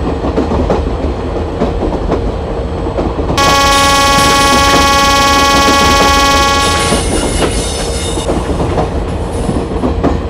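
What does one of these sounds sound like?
A train rumbles along the rails with rhythmic clacking of the wheels.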